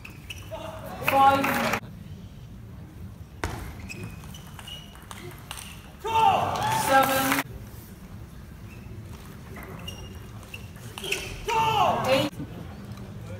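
A large crowd cheers and shouts in bursts in a big echoing hall.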